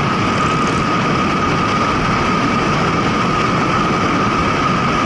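A motorcycle engine hums steadily underneath.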